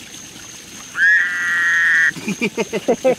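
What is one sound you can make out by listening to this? A toad gives a loud, steady, high trill close by.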